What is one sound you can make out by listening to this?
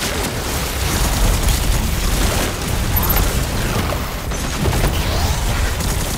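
Energy blasts boom and crackle in a video game.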